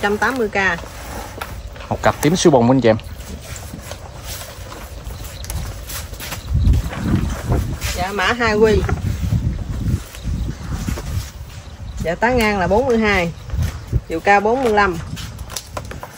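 A woman speaks nearby in a lively voice.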